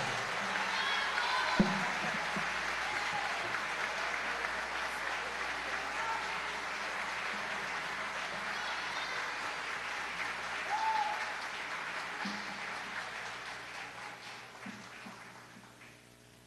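A large audience applauds and cheers in a big hall, then slowly fades.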